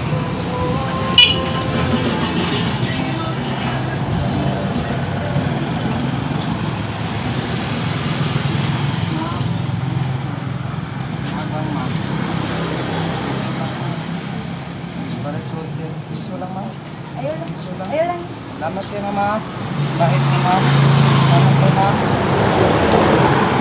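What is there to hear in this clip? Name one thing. Traffic rumbles past along a street outdoors.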